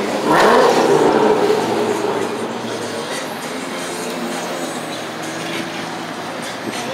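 A car engine rumbles deeply nearby, loudest at first and then settling to a steady idle.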